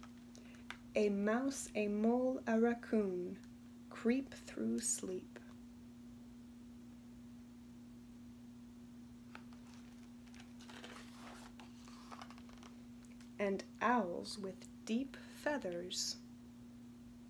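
A young woman reads aloud calmly, close by.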